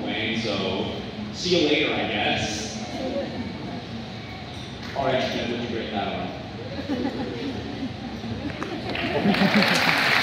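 A young man speaks through a microphone and loudspeakers in a large echoing hall.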